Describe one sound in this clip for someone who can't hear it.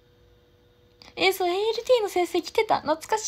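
A young woman speaks close to the microphone with animation.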